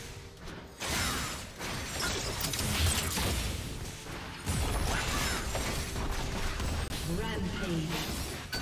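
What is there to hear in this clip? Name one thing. Blows and blasts thud and boom in quick bursts.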